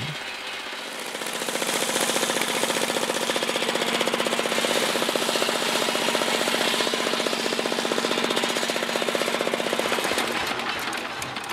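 A circular saw whines loudly as it cuts through wood.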